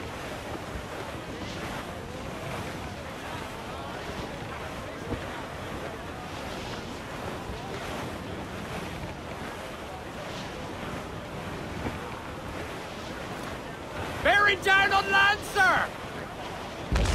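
Waves wash and splash against a wooden ship's hull.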